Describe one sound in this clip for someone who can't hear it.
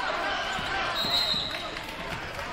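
A referee blows a short, shrill whistle.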